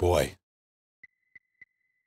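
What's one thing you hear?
A game menu gives short electronic beeps.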